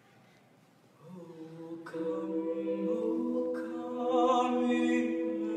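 A group of teenagers sing together in harmony without instruments.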